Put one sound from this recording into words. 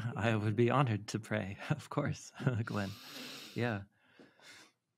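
A man laughs heartily into a close microphone.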